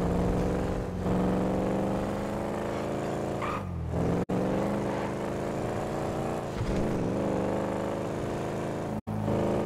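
A car engine revs steadily, dropping in pitch at each gear change.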